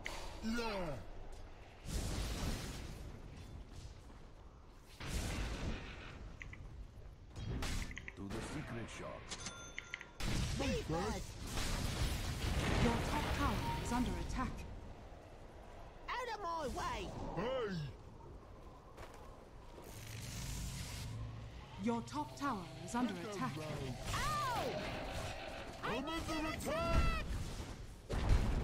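Spells whoosh and weapons clash in a fantasy battle game.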